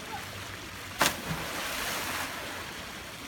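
A child jumps into a pool with a loud splash.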